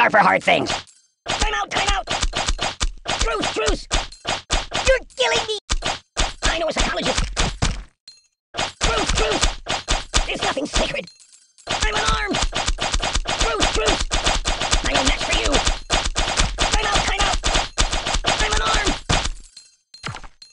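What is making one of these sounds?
Small metal objects thud rapidly against a stuffed doll.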